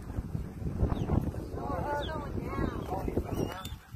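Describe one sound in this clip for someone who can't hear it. A dog whines and yelps nearby.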